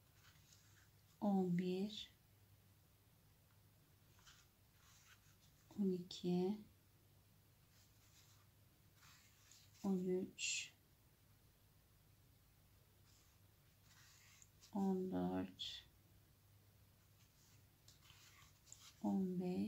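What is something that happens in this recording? Yarn rustles softly as it is pulled through crocheted fabric.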